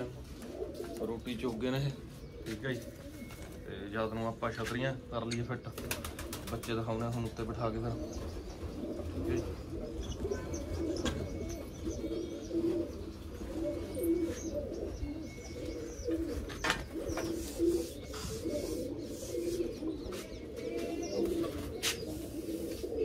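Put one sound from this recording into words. Pigeons coo steadily close by.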